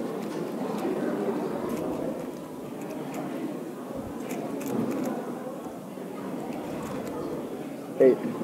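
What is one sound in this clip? A puzzle cube clicks and clatters as it is turned rapidly.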